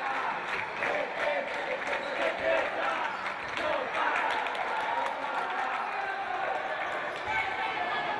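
A crowd cheers and chants in a large echoing indoor hall.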